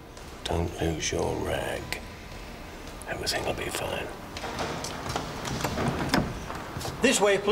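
An elderly man speaks quietly and closely.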